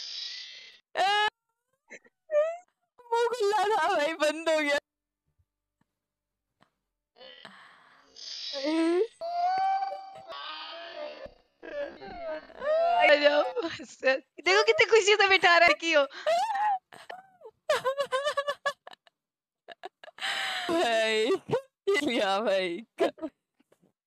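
A young woman talks and laughs, heard through a microphone.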